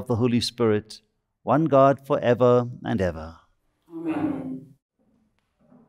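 A middle-aged man chants a prayer aloud.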